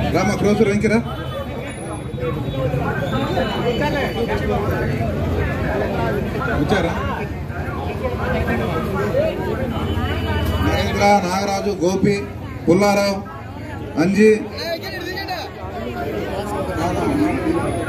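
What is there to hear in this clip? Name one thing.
A crowd of men talks and chatters loudly all around.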